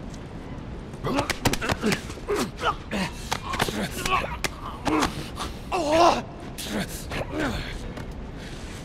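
Two men grunt and gasp as they struggle.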